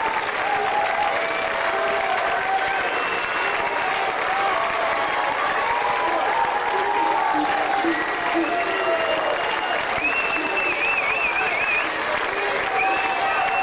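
A big band plays lively music outdoors.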